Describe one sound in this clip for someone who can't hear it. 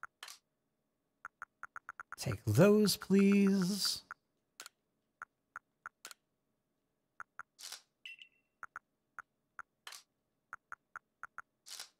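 Short electronic menu blips tick quickly and repeatedly.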